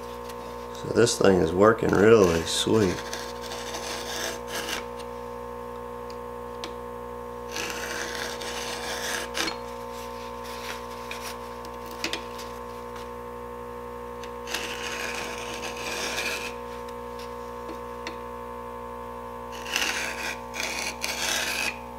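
A round file rasps in short strokes across the cutters of a chainsaw chain.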